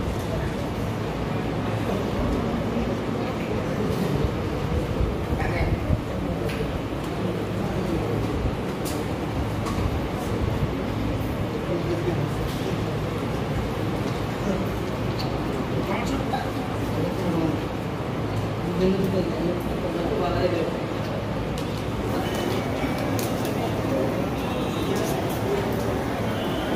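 Many children chatter and murmur throughout a large echoing hall.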